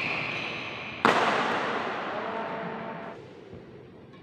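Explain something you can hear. A racket smacks a shuttlecock, ringing out in a large echoing hall.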